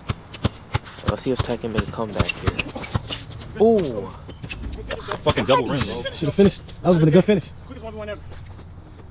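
A young man talks loudly and with animation nearby.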